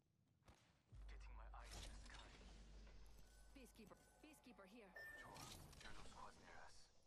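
A heavy metal lid swings open with a clank and a hum.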